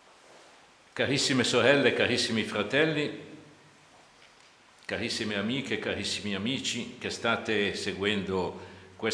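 An elderly man reads aloud slowly and solemnly through a microphone in a room with a slight echo.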